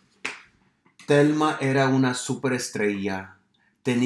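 A man reads aloud expressively, close by.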